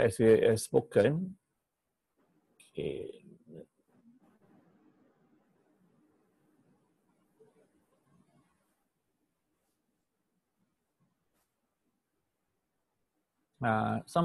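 A man speaks calmly over an online call, in short bursts.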